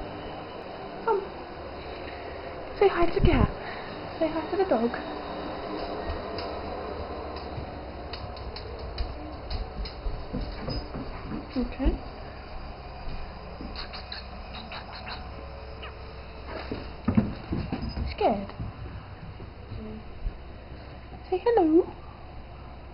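A dog whines softly nearby.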